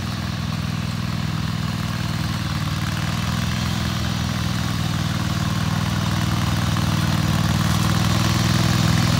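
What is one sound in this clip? A ride-on lawn mower engine rumbles steadily and grows louder as it approaches.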